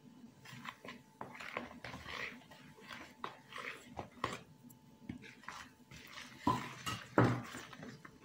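Hands mix flour in a plastic bowl.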